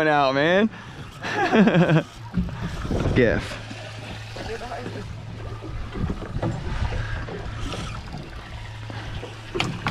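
A boat's outboard motor hums steadily.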